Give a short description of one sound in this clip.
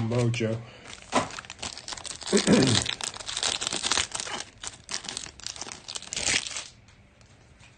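A plastic wrapper crinkles and tears.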